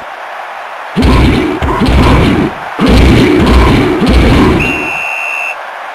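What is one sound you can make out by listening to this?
Football players crash together in a tackle with heavy thuds.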